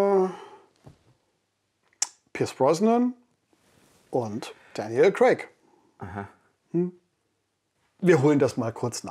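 A middle-aged man speaks with animation, close by.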